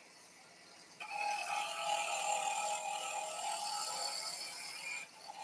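A wood lathe spins with a tool scraping the turning wood.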